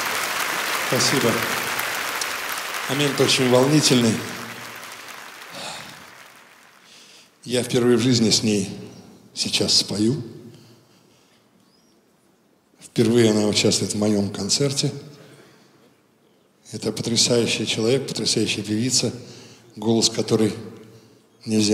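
A man speaks into a microphone over loudspeakers in a large hall, with pauses.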